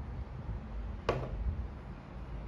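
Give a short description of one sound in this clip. A ceramic mug is set down on a table with a knock.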